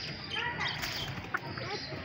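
Chickens cluck nearby.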